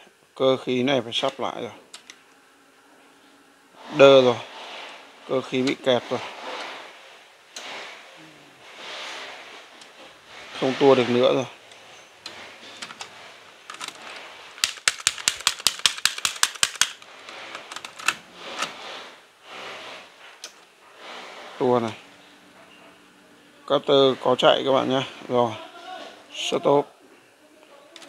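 Buttons on a cassette deck click as they are pressed.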